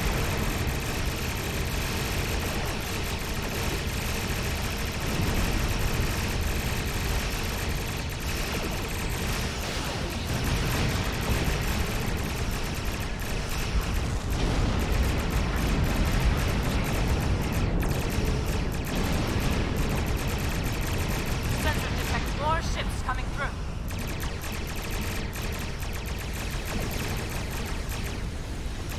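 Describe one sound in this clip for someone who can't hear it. Explosions rumble deeply.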